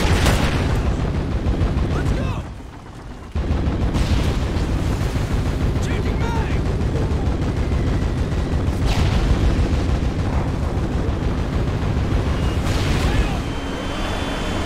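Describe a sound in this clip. Explosions rumble in the distance.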